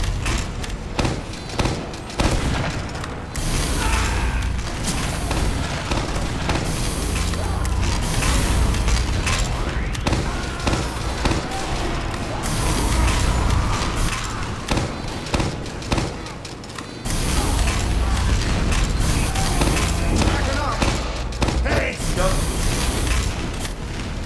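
A minigun roars as it spins and fires in rapid bursts.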